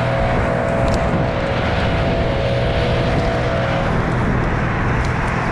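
Climbing gear clinks softly.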